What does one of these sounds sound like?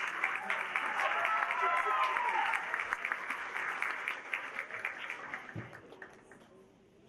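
An audience claps and cheers in a hall.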